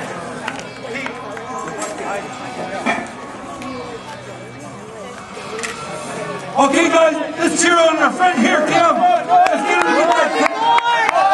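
A man shouts encouragement close by.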